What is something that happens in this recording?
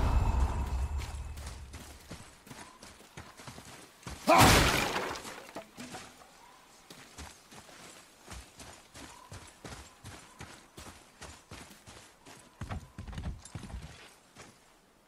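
Heavy footsteps crunch on stone and gravel.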